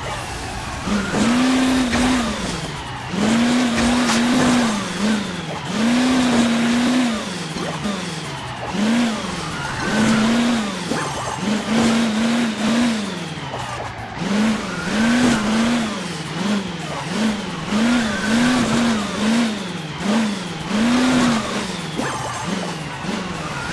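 A game vehicle's engine revs up and down over and over.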